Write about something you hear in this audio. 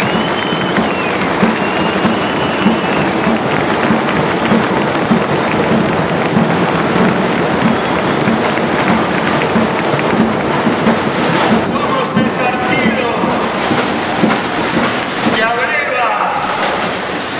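A man talks animatedly through a microphone in a large echoing hall.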